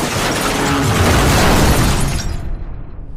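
Debris clatters and scatters.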